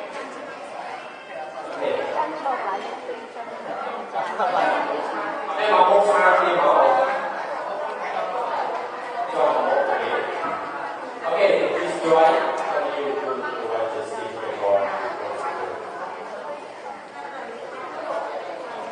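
A young man speaks with animation through a loudspeaker.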